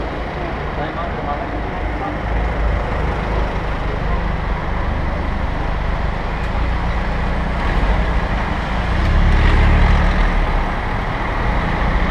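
Wind rushes past a moving bicycle.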